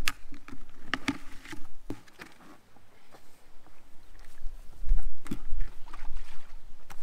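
Plastic buckets knock and clatter as they are handled.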